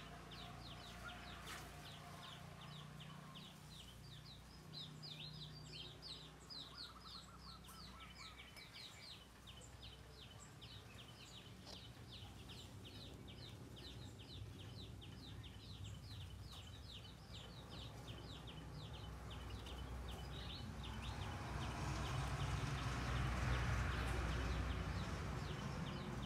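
Ducklings peep rapidly and shrilly, close by.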